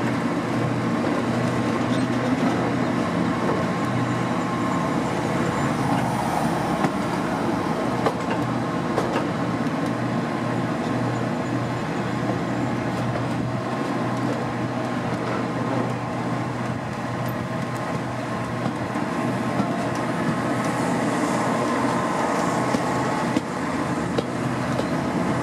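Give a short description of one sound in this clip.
A steam locomotive chuffs rhythmically up ahead.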